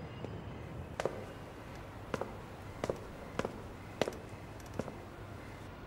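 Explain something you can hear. High heels click across a hard floor.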